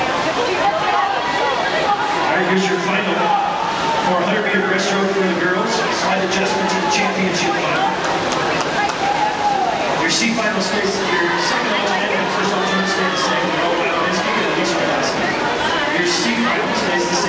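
Swimmers splash and churn the water in an echoing pool.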